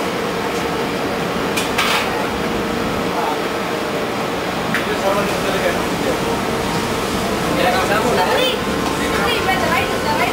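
A man talks in a noisy room.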